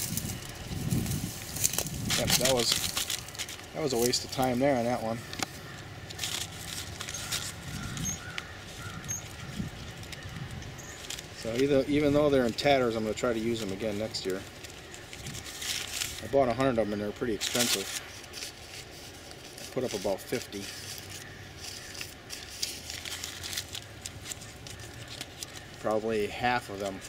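A paper bag rustles and crinkles as hands handle it.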